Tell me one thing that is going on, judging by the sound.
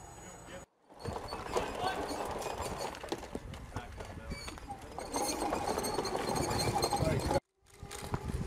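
A tracked robot rumbles and clanks over gravel.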